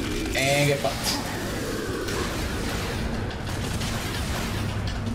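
Weapons clash and thud in a fight in a game.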